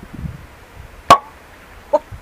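A cork pops out of a bottle.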